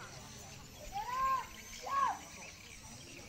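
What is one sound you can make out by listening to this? A man shouts a loud command outdoors.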